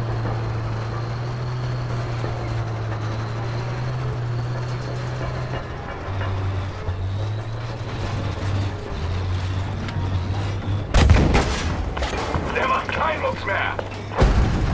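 A tank engine rumbles and idles steadily.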